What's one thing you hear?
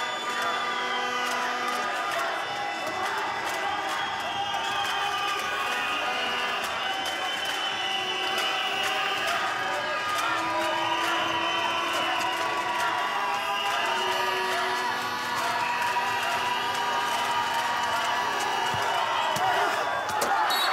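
Sports shoes squeak sharply on the floor.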